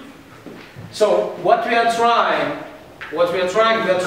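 An elderly man speaks with animation in an echoing room.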